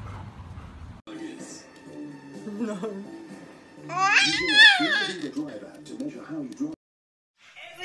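A baby coos and gurgles loudly.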